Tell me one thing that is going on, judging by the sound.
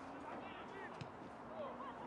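A football is kicked hard with a thud.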